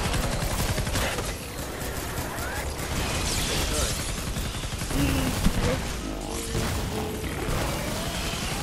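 An energy blast explodes with a loud crackling boom.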